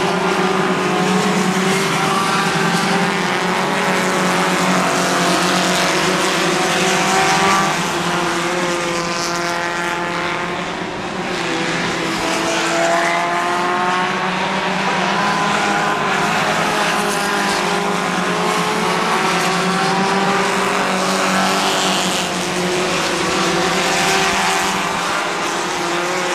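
Race car engines roar and whine as cars speed around a track.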